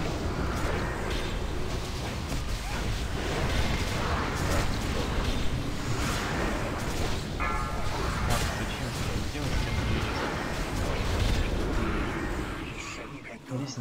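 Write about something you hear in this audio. Weapons clash and strike in combat.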